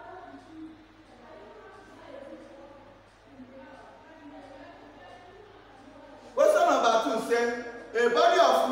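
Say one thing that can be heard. A young man lectures steadily, then speaks louder and closer.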